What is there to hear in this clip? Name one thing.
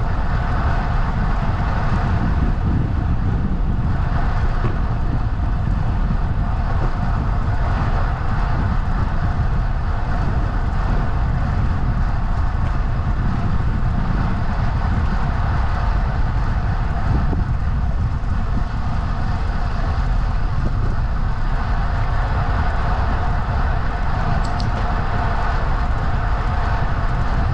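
Wind rushes loudly and steadily past the microphone.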